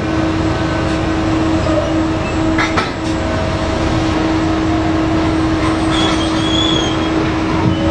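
A huge mining excavator's engine hums loudly and steadily.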